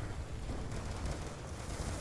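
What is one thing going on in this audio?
Gunshots crack in the distance.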